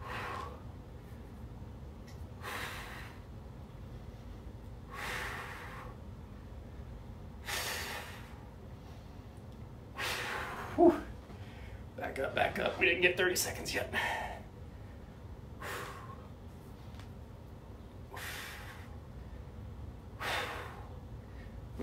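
A man breathes out hard in regular bursts.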